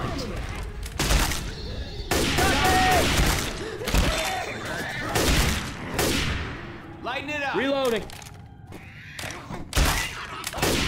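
A rifle fires loud, sharp shots that echo in a room.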